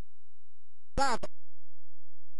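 An electronic arcade game plays a short, quickly falling chirp.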